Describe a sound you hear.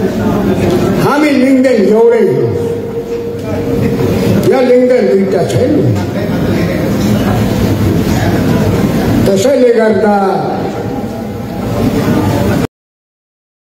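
A man speaks loudly through a loudspeaker in an echoing hall.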